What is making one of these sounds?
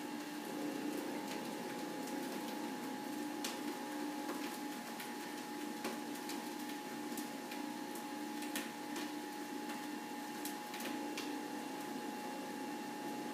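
Leafy greens rustle and tap as a man handles them.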